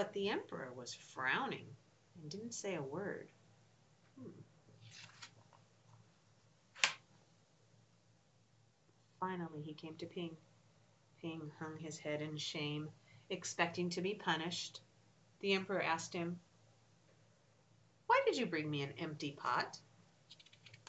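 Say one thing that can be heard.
A middle-aged woman reads aloud expressively, close to a microphone, with pauses.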